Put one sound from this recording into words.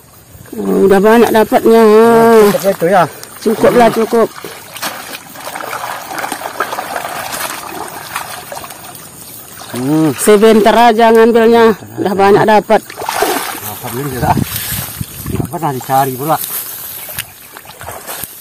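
Water splashes as a man wades through a shallow stream.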